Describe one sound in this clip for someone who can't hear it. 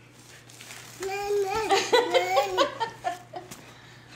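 A baby babbles and squeals loudly up close.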